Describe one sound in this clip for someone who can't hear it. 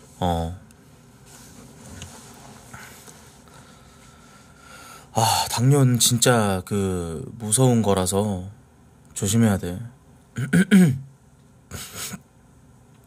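A young man speaks calmly and close into a microphone, with pauses.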